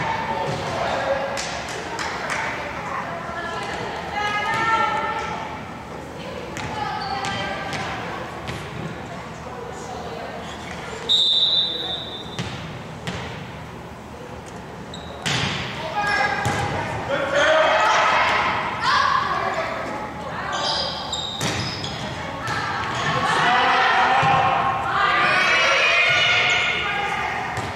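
Players and spectators cheer and shout in an echoing gym.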